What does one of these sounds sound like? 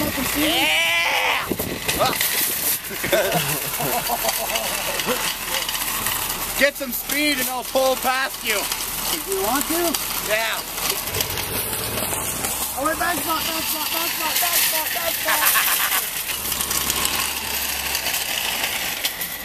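Shopping cart wheels rattle over asphalt.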